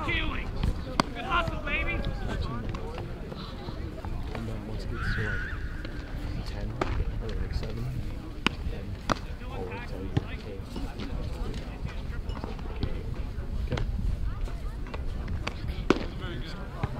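A baseball smacks into a leather glove.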